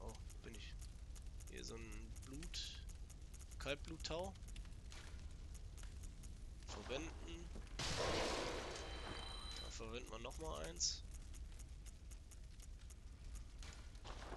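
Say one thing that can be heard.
Menu selections tick softly, one after another.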